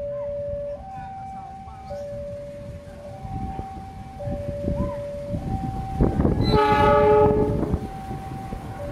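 A diesel locomotive approaches with a rising, rumbling engine.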